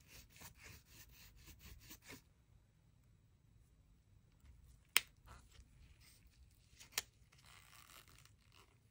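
Gloved hands rustle and handle a coiled plastic cable wrap.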